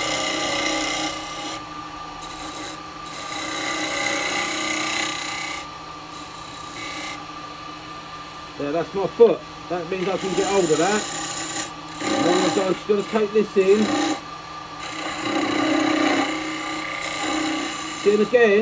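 A chisel scrapes against spinning wood in rising and falling bursts.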